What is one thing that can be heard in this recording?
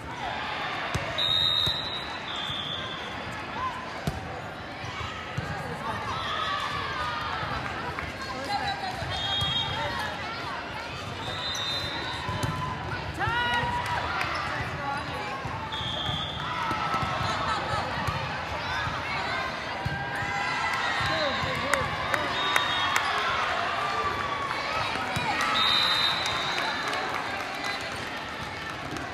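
A crowd of spectators chatters and cheers throughout in a large echoing hall.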